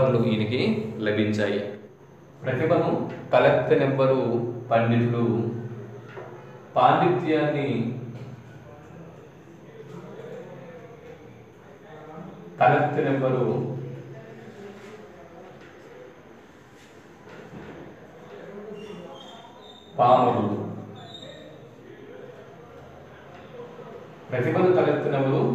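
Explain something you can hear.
A man speaks calmly and clearly, close by, explaining at a steady pace.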